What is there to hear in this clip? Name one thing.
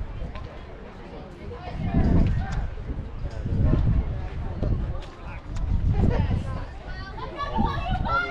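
Children call out to each other across an open field, heard from a distance.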